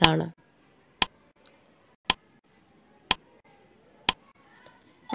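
A countdown timer ticks once a second.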